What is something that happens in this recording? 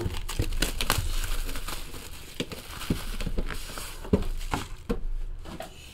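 Packaging crinkles and rustles in hands.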